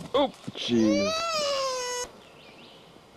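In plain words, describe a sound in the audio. A small child squeals loudly and playfully.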